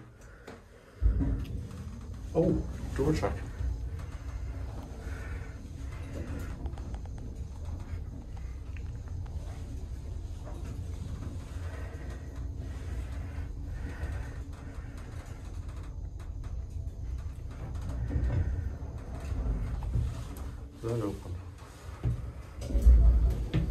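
An elevator hums and rumbles steadily as it moves.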